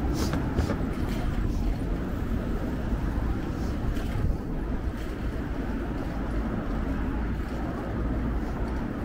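Traffic hums steadily along a nearby road.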